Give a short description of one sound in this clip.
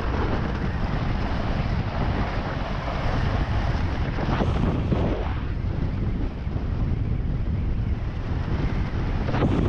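Water rushes and splashes under a fast-moving board.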